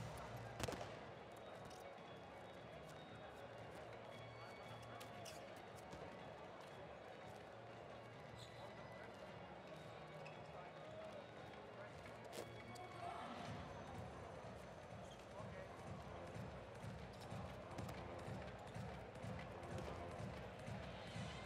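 Balls bounce on a hard court floor.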